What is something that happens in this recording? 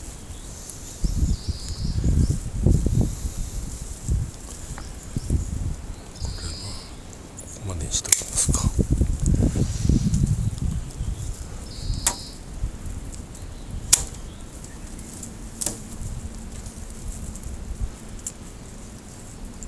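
Leafy branches rustle as hands push through them.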